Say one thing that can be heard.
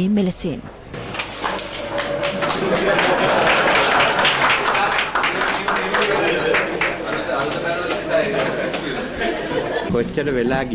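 A crowd laughs loudly.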